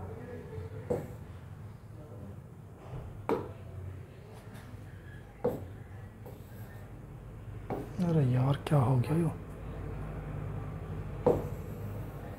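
A pen taps on a hard surface.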